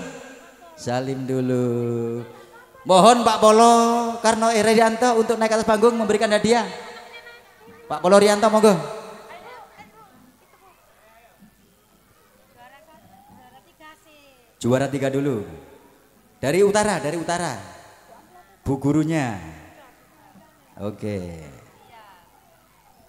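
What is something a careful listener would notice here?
A man speaks into a microphone with animation, heard through loudspeakers outdoors.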